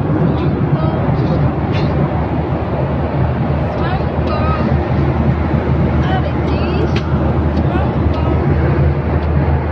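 A jet engine drones with a steady low roar.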